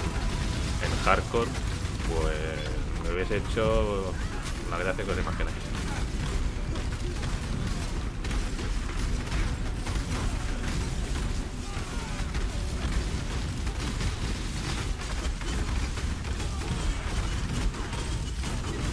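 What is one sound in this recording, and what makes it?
Spells and weapons clash and explode in a busy fight.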